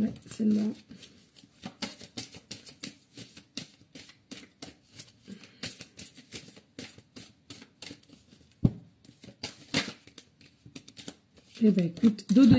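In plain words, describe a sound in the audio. Cards are shuffled with quick, crisp flicks.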